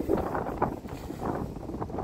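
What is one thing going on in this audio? Water pours from a plastic jug and splashes.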